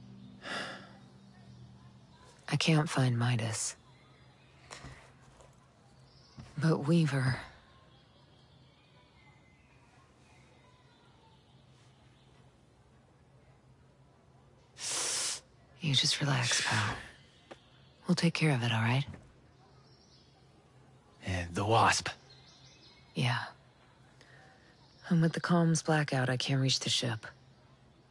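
A man speaks weakly and quietly, close by.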